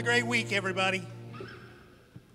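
A man speaks loudly through a microphone in a large room.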